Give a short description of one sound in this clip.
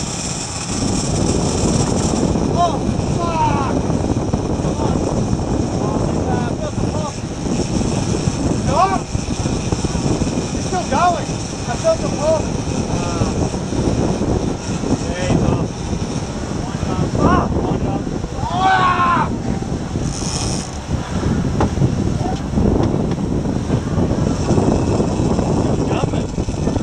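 A boat engine roars steadily.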